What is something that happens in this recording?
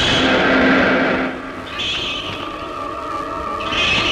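Keys jingle in a car's ignition.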